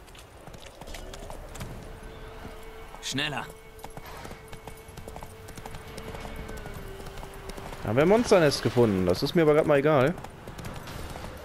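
A horse gallops with its hooves thudding on the ground.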